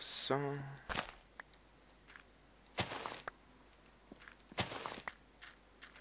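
Plants snap and rustle as they are broken off in short bursts.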